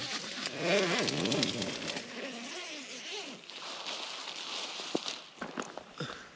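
Nylon tent fabric rustles and crinkles close by.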